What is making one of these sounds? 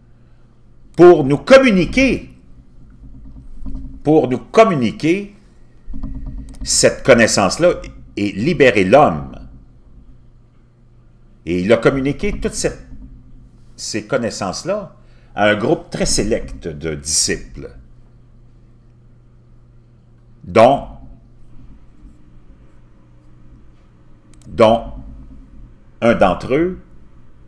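A middle-aged man talks with animation into a close microphone, in bursts with pauses.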